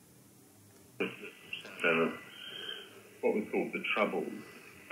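A radio receiver plays a crackly, thin broadcast through a small laptop speaker.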